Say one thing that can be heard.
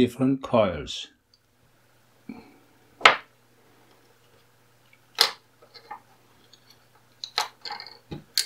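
Small plastic parts click and knock against a hard surface.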